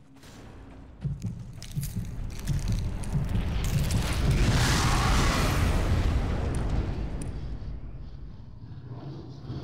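A deep rumbling roar swells and fades.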